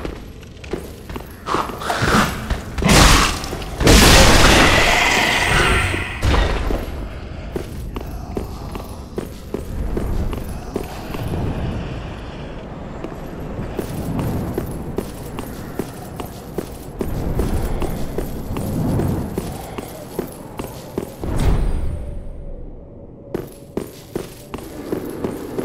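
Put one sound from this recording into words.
Footsteps clatter quickly on stone.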